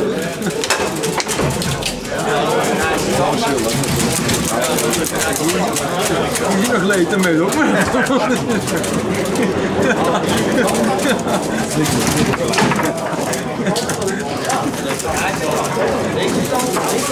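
Table football rods clatter and the ball knocks sharply against the players.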